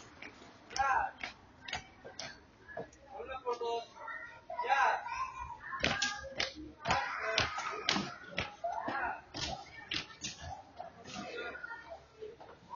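Shoes scuff and tap on concrete as a group walks.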